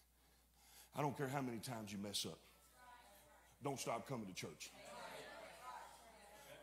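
A middle-aged man preaches loudly with passion through a microphone in a large echoing hall.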